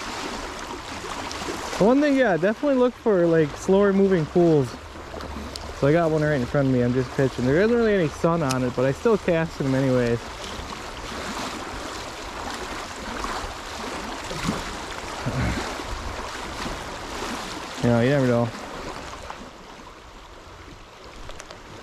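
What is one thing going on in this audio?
A river flows and gurgles nearby.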